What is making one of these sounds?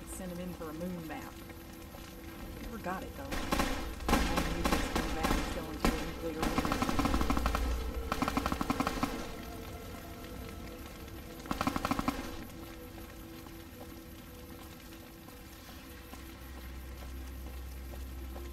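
Fire crackles and roars nearby.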